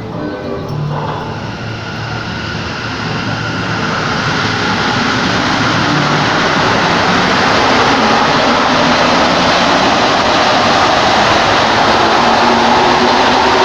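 A subway train pulls away from the platform, its rumble growing louder and echoing.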